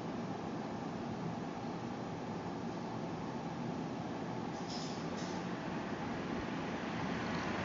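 A cat purrs steadily up close.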